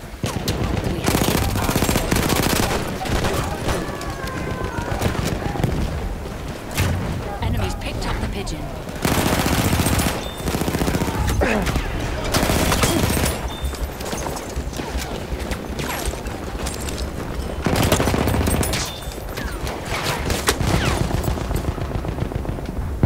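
Gunshots crack repeatedly, loud and close.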